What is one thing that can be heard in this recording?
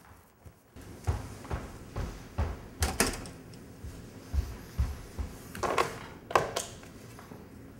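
Bare feet thud on a wooden floor.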